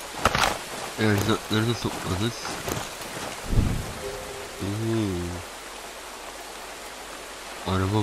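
A man talks calmly into a headset microphone.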